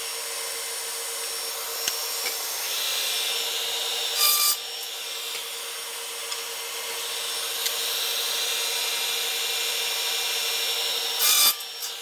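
A power saw motor whines steadily.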